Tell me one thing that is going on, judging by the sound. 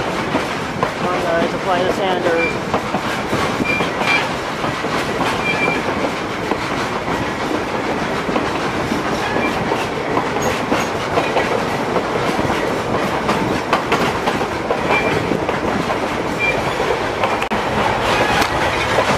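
A passenger train rolls along the track with a steady rumble.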